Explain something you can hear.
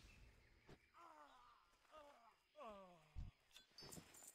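A creature lets out falling, groaning cries.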